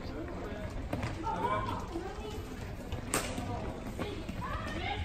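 Floorball sticks clack against a ball.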